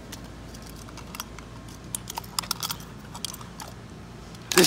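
Plastic crinkles and clicks in a young man's hands.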